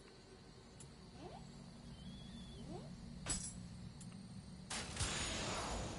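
A menu clicks as options are scrolled.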